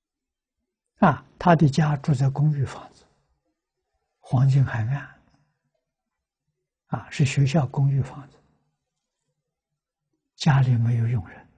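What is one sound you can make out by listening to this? An elderly man speaks calmly and slowly into a close microphone, in short phrases with pauses.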